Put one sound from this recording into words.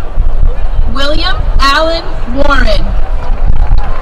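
A man announces through a loudspeaker outdoors.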